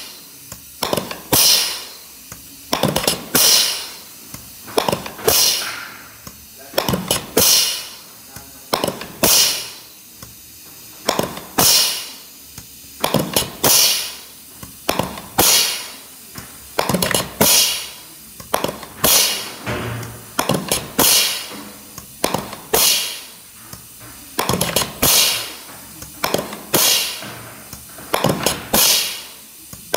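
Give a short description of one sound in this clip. Metal parts of a valve assembly clack and shift back and forth in a steady, repeating rhythm.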